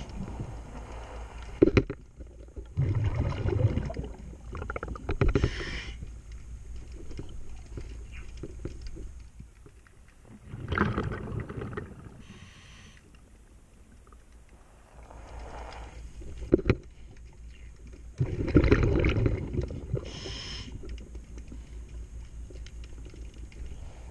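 Water swishes and gurgles close by, muffled and heard from underwater.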